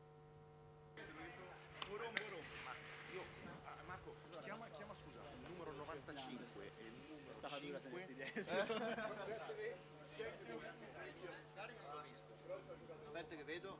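A small crowd of people chatters nearby outdoors.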